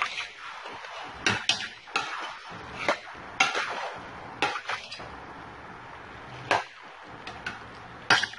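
Food sizzles and bubbles steadily in a pot.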